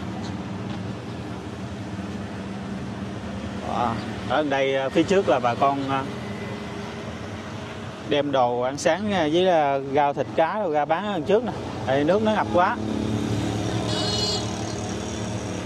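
A motorbike engine hums nearby.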